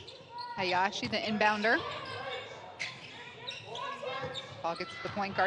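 A basketball bounces on a wooden court in a large echoing hall.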